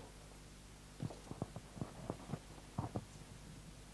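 Footsteps cross a stage.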